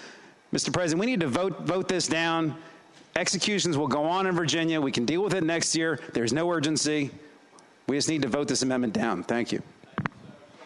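A man speaks forcefully into a microphone, heard through a loudspeaker system in a large hall.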